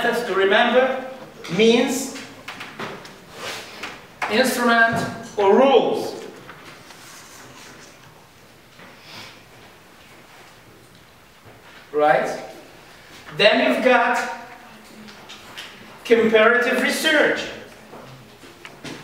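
An older man speaks calmly, lecturing in bursts with pauses.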